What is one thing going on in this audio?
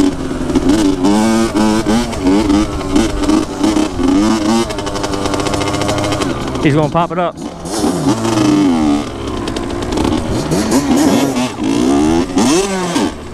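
A dirt bike engine revs loudly and close by.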